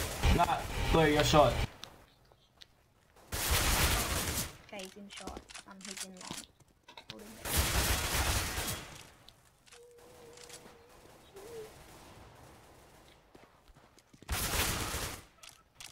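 A rifle fires loud rapid shots.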